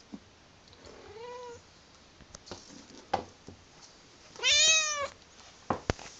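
A kitten meows loudly, high and plaintive, twice.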